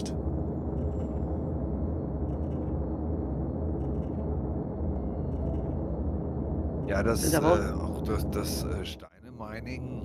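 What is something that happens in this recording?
A spaceship engine hums low and steady.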